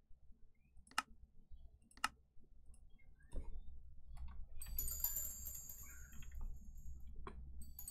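Short sharp clicks sound from a game menu.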